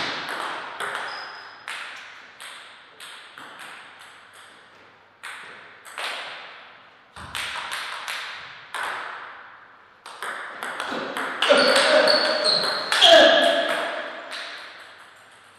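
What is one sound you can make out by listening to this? A table tennis ball clicks sharply against paddles and the table, echoing in a large hall.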